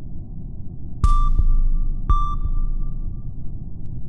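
Two short electronic chimes ring one after another.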